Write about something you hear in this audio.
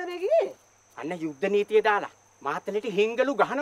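A woman speaks nearby.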